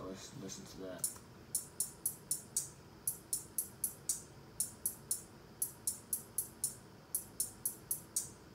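A crisp electronic hi-hat beat ticks in a steady rhythm.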